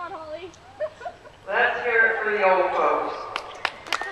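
A man speaks over a loudspeaker, echoing outdoors.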